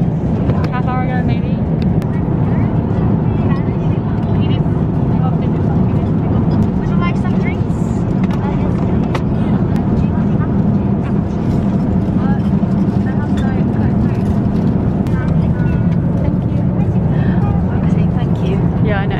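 A young woman talks quietly close by.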